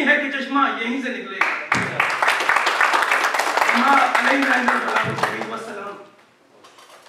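A man speaks steadily through a microphone with a loudspeaker.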